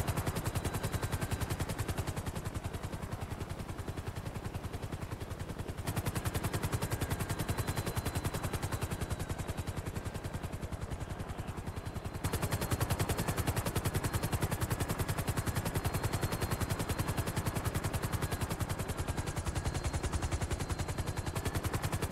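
A helicopter's rotor blades thump rapidly and steadily overhead.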